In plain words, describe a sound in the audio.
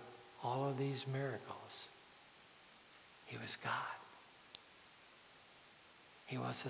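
A man preaches through a microphone in a large echoing hall, pausing between phrases.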